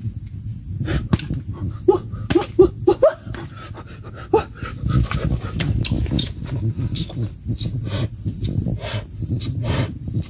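Wood cracks and splits as it is pried apart.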